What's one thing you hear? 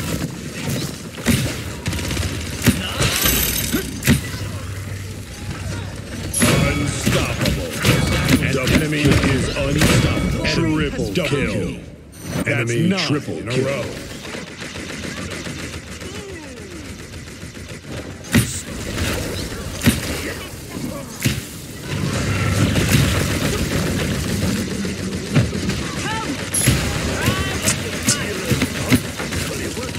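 A weapon fires shots in quick bursts.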